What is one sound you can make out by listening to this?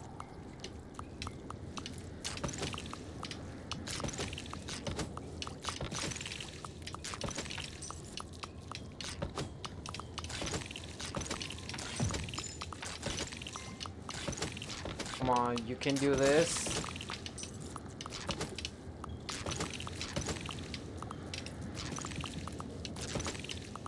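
Sword slashes swish and strike again and again.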